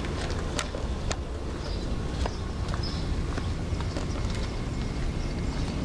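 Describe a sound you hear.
Footsteps walk across pavement outdoors.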